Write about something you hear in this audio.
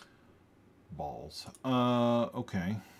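A man speaks calmly and close to a microphone.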